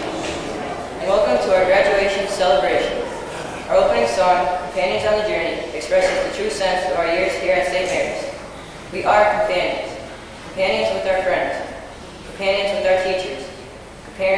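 A boy speaks calmly into a microphone, heard through a loudspeaker in an echoing hall.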